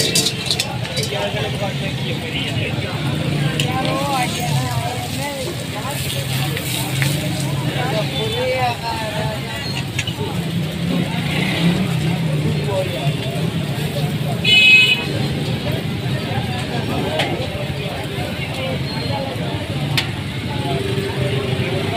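Egg sizzles and crackles steadily on a hot griddle.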